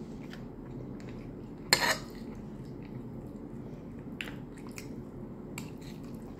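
A woman chews a mouthful of rice and stew close to the microphone.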